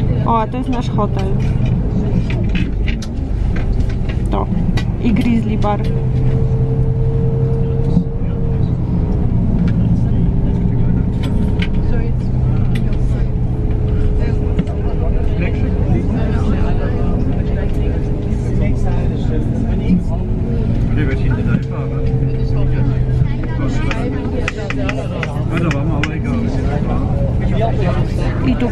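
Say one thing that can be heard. A bus engine hums steadily from inside as the bus drives along.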